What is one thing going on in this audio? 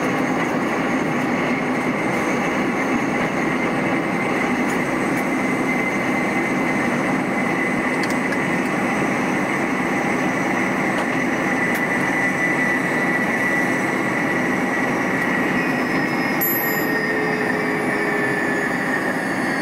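Train wheels hum with a steady whine.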